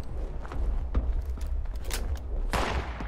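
A pistol clicks as it is reloaded.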